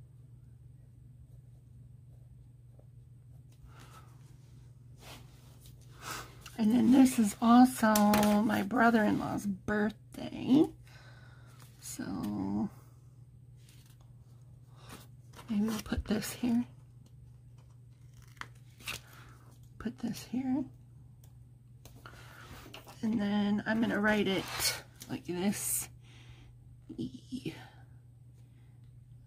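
A pen scratches faintly on paper.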